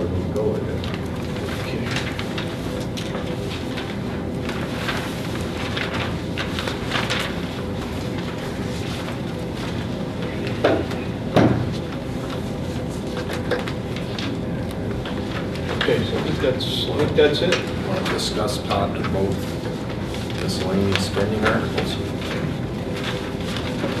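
A woman types on a laptop keyboard close by.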